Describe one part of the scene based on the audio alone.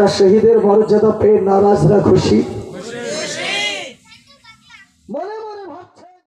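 A man preaches in a loud, chanting voice through a microphone and loudspeakers, with echo.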